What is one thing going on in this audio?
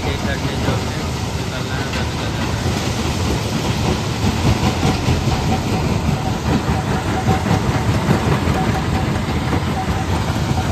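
A stone crusher rumbles and rattles steadily outdoors.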